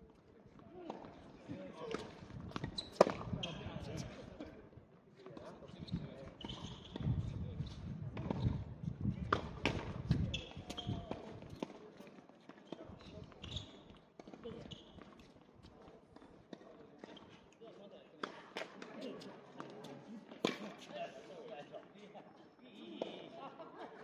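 Sneakers scuff and squeak on a hard court.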